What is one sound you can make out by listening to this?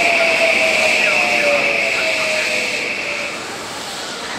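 A train's wheels squeal on the rails.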